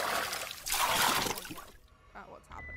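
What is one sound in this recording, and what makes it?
Water splashes as a dog paddles.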